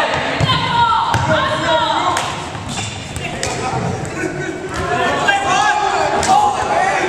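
Sneakers squeak sharply on a wooden floor in a large echoing hall.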